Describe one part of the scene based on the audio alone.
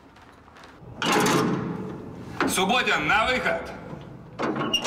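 A man shouts a call through a small opening.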